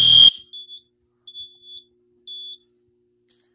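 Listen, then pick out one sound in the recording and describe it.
A control panel keypad gives short electronic beeps.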